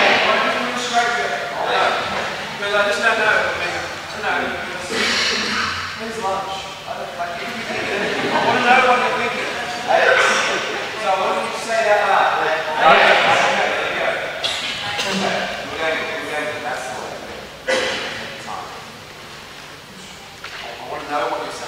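Many men and women chatter at once in a large echoing hall.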